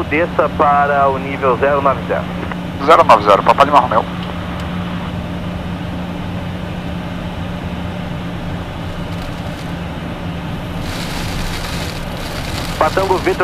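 A man speaks calmly in short phrases over a radio headset.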